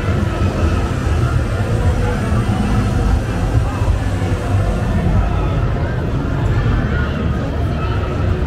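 Wooden parade floats roll over the street.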